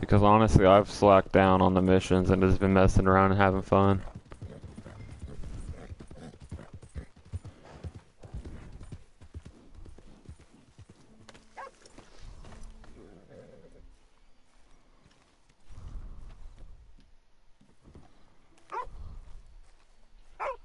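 Horse hooves clop slowly on soft ground.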